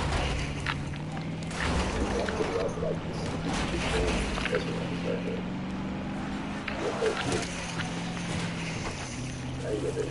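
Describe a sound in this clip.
A vehicle engine hums steadily as a truck drives over rough ground.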